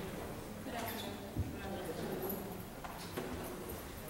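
A young woman speaks softly into a microphone.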